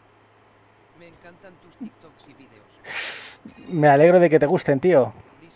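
A young man talks into a close microphone, with animation.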